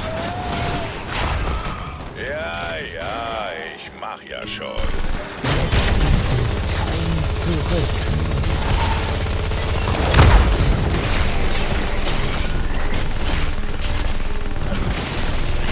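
Game battle effects clash and blast with loud impacts.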